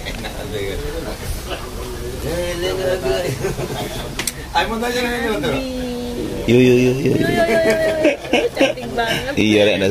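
A young man talks nearby outdoors.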